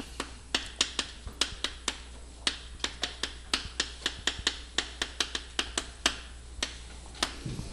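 Chalk taps and scrapes rapidly on a board.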